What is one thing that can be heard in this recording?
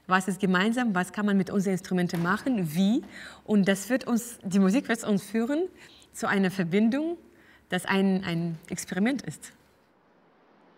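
A young woman speaks calmly and warmly, close to a microphone.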